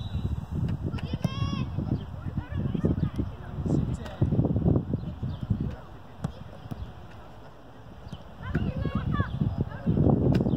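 Young players shout to each other far off across an open field.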